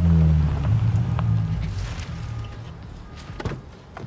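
A car engine idles with a low rumble, then fades.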